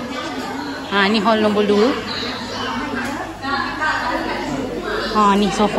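Young children shout and talk excitedly nearby.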